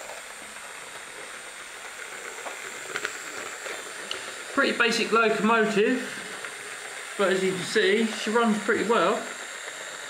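A small electric motor whirs as a model locomotive rolls along metal track.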